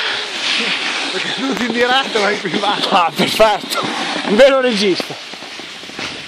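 A young man talks and laughs close by.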